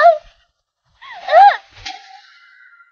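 A young woman cries out in pain.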